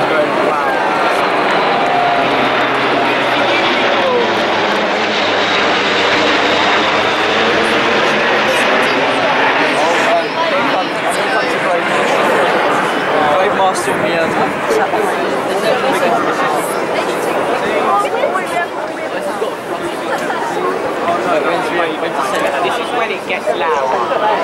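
A crowd of men and women chatters all around.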